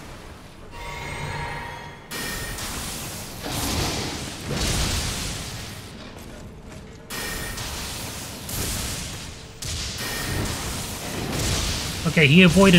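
Lightning spells crackle and boom in loud bursts.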